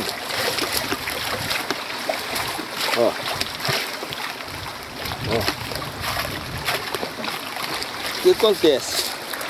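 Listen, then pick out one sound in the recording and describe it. Boots squelch and crunch on wet soil and dry leaves.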